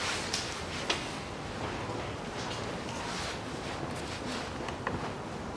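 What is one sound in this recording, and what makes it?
Plastic sheeting rustles.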